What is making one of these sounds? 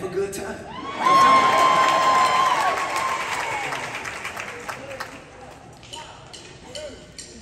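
A man sings into a microphone in a large echoing hall.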